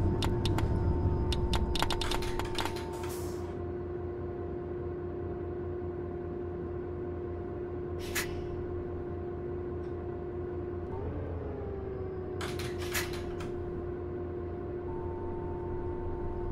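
A diesel city bus engine idles.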